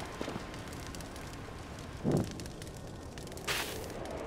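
Flames crackle and roar as dry vines catch fire.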